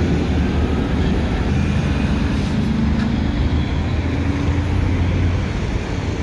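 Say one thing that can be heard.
Heavy traffic rumbles steadily past on a road outdoors.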